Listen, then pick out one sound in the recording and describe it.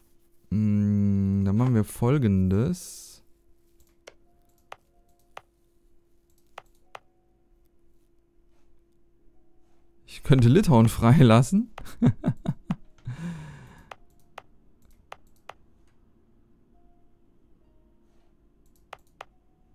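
Soft interface clicks sound as menus open and close.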